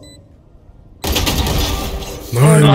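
Rapid gunshots rattle in a quick burst.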